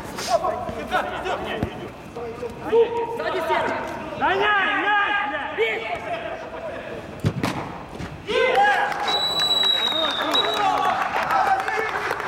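Men shout to each other in a large echoing hall.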